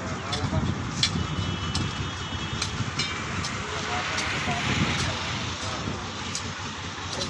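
A spade digs into soil with dull thuds.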